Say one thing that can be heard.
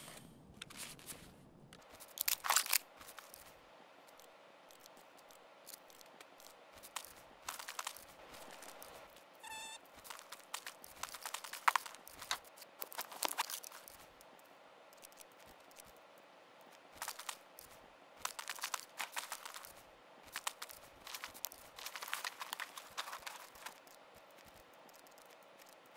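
Gear and packs rustle and clatter as items are handled.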